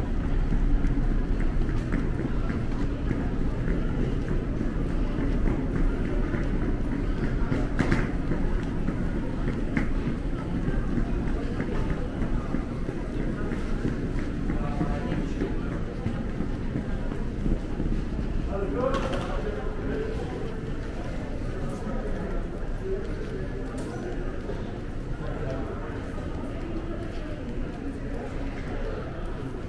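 Footsteps walk across a hard floor in a large echoing hall.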